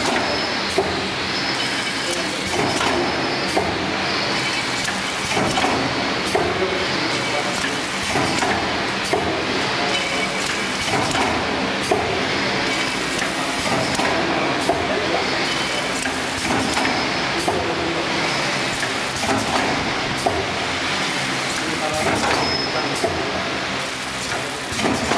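A packaging machine hums and clatters steadily, with rhythmic mechanical clicks.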